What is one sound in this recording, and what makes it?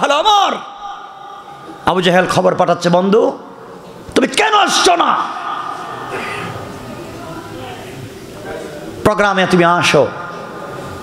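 A man speaks forcefully in loud bursts into a microphone, his voice echoing through loudspeakers.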